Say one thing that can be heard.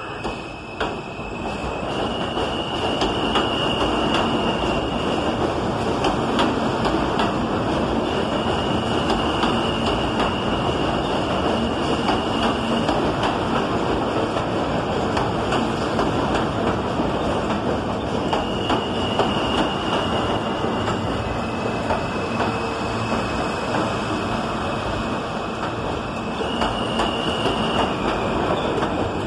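A subway train rushes past with a loud, steady rumble and clatter.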